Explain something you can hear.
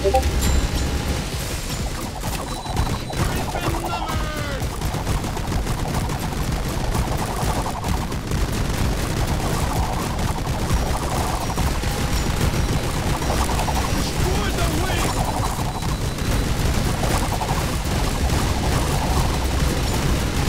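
Laser beams zap in short bursts.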